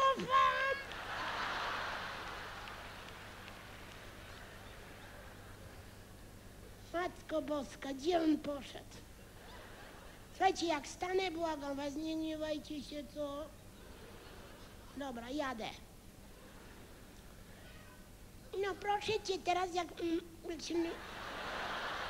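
A large audience applauds in a large hall.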